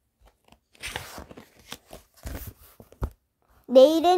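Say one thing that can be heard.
Paper pages rustle as a book page is turned.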